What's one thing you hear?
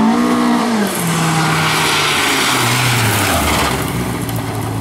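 A car's tyres skid and scatter gravel.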